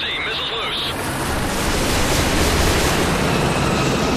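A helicopter's rotors roar loudly close by.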